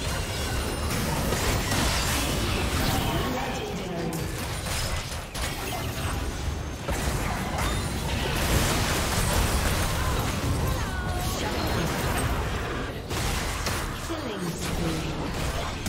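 Game spells blast and crackle in a fast battle.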